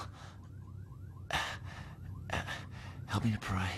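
A man gasps and breathes heavily close by.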